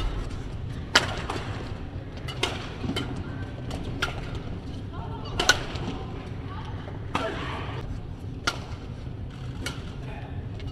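Badminton rackets strike a shuttlecock back and forth.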